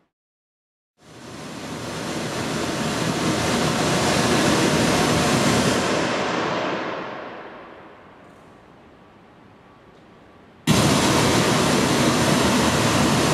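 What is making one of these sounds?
Loud hissing test noise plays from a loudspeaker and echoes through a large hall.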